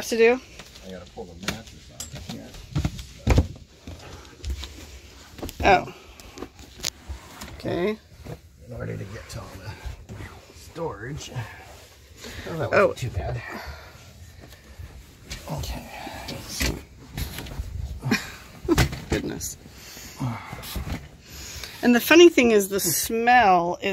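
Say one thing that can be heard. Knocks and thumps sound as things are moved about.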